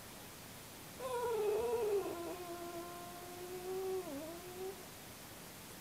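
A cat meows long and plaintively.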